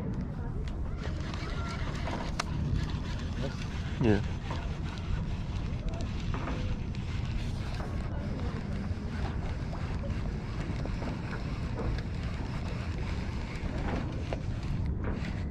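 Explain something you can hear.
A fishing reel whirs as it is cranked.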